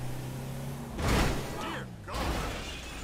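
A van crashes and tumbles with a loud bang.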